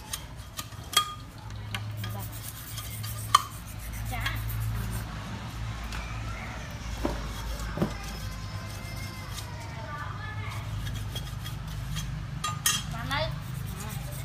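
A knife chops into bamboo with sharp knocks.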